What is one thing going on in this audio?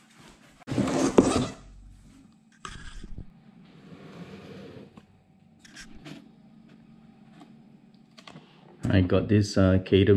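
Glossy packaging slides and rustles as it is lifted out.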